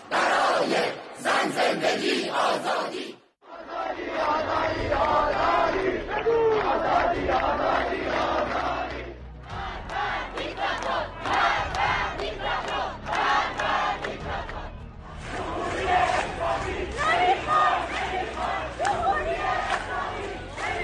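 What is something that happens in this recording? A large crowd chants together outdoors.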